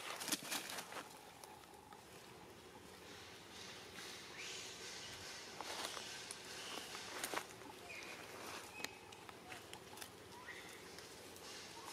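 A monkey's claws scrape on tree bark as it climbs.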